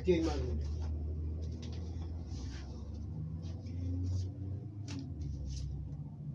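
Paper sheets rustle and flap.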